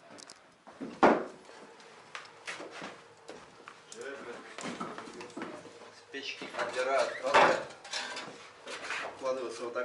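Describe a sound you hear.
Bricks knock against a wooden floor and a metal stove.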